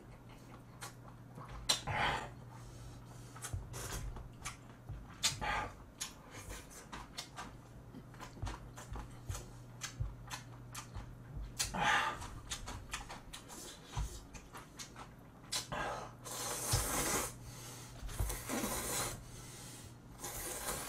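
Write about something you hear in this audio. A young man chews and smacks his lips close by.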